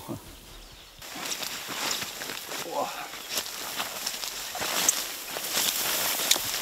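Wheat stalks rustle and swish as a man pushes through them.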